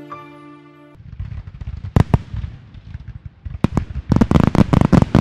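Fireworks bang and crackle in the sky.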